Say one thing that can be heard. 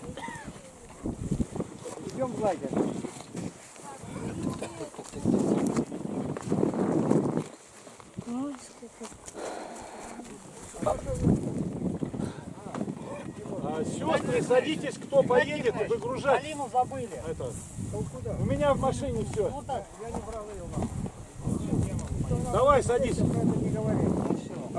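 A crowd of men and women talk and murmur nearby outdoors.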